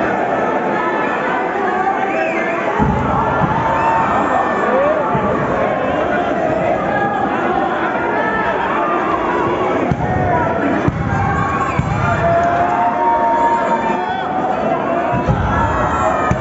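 A large crowd cheers and shouts in an arena.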